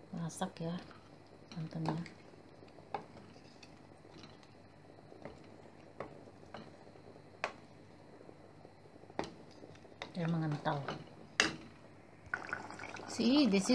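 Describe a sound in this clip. A wooden spoon scrapes and knocks against a metal pot while stirring a stew.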